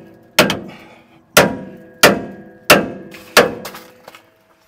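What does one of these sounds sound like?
A hammer strikes metal with loud ringing blows.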